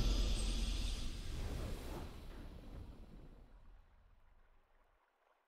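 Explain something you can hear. A triumphant video game victory fanfare rings out and slowly fades away.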